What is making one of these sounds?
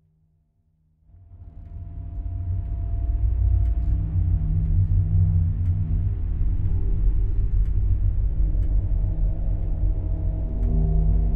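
A low, eerie drone hums steadily and grows louder.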